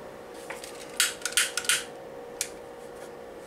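A lighter clicks several times.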